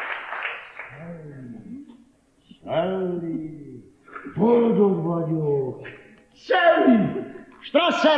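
An elderly man sings out loudly and with feeling.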